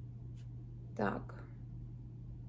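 A young woman makes a short vocal sound.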